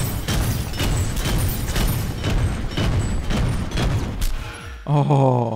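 Explosions burst with loud bangs.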